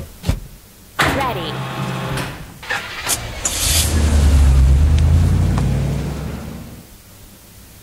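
A truck engine starts and revs loudly, then fades as the truck drives away.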